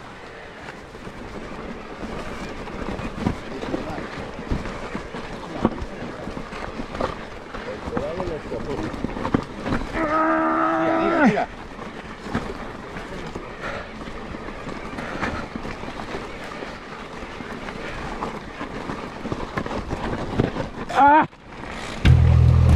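Wind rushes past the rider.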